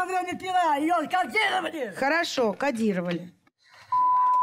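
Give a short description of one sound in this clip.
A woman speaks with animation, heard through a broadcast.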